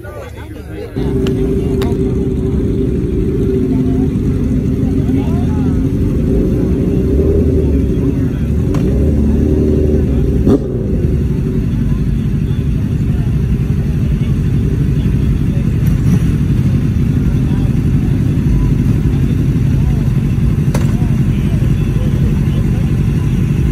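Motorcycle engines idle and rev loudly close by.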